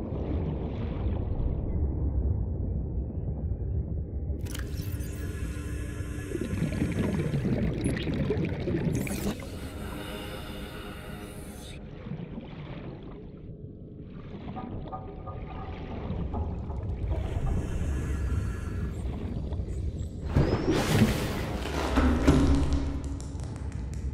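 Deep underwater ambience rumbles steadily.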